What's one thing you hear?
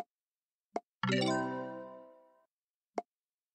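A bright sparkling chime plays in a burst and fades.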